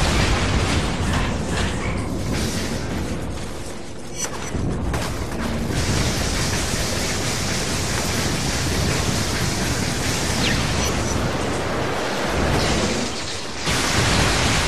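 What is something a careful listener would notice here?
Electricity crackles and zaps in loud bursts.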